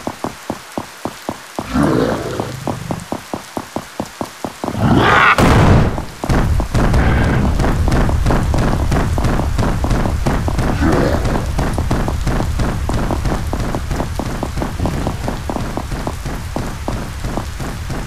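Footsteps fall steadily on stone.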